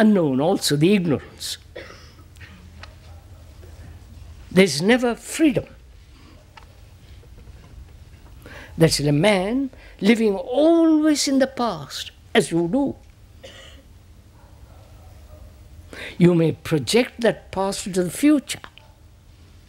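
An elderly man speaks slowly and thoughtfully into a microphone, with long pauses.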